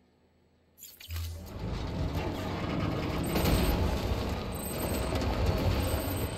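A vehicle engine rumbles loudly.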